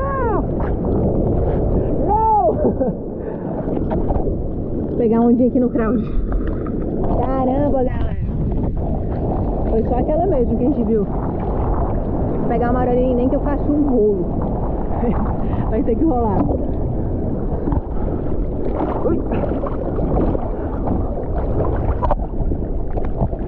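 Water splashes and sloshes close by, outdoors in wind.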